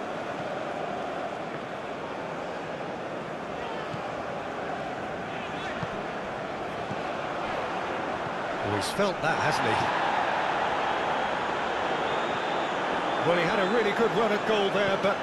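A large crowd roars steadily in a stadium, growing louder toward the end.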